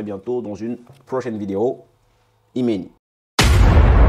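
A man speaks calmly and closely into a clip-on microphone.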